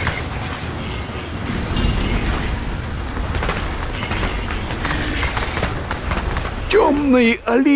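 Battle sounds of weapons clashing and blasts ring out in a busy fight.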